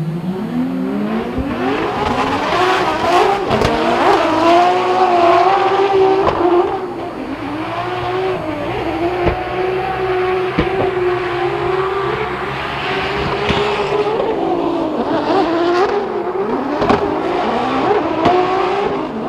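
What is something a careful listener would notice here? Race car engines roar and rev loudly throughout.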